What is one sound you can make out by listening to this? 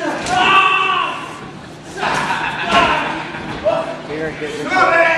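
Spectators shout and cheer loudly in an echoing hall.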